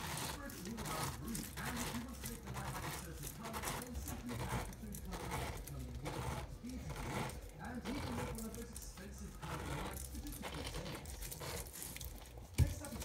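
A metal corer crunches and squelches as it is twisted into a pineapple.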